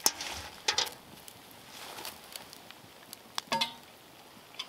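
A metal pot clanks onto a grill.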